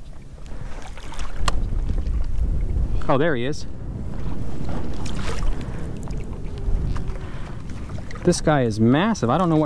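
A pole dips and swishes through shallow water.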